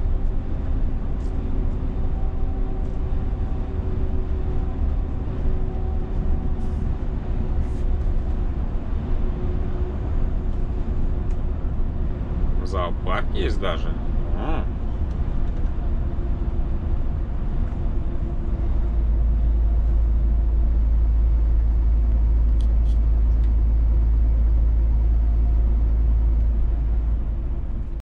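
A truck's engine drones steadily as it drives along a highway.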